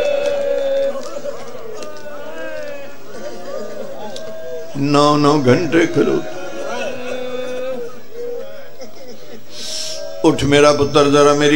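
A middle-aged man speaks passionately through a microphone in a reverberant space, his voice rising into loud chanting bursts.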